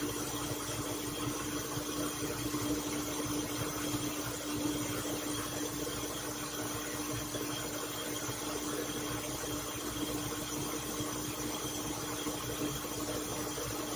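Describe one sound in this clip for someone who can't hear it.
A blender whirs steadily close by.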